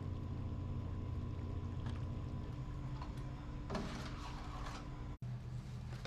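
A spoon scrapes through thick sauce in a metal pan.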